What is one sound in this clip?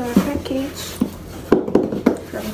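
A cardboard box rustles and taps in a young woman's hands.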